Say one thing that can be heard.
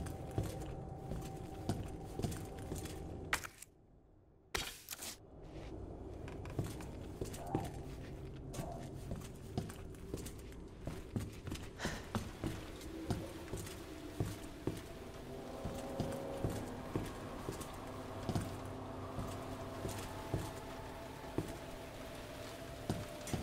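Footsteps tread steadily across a hard floor.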